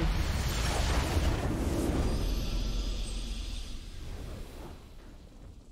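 A triumphant fanfare swells and then slowly fades.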